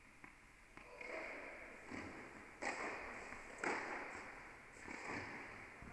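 A tennis ball is struck and bounces, echoing in a large hall.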